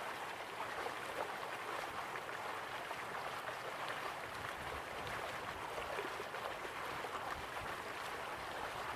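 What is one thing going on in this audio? A stream rushes over rocks.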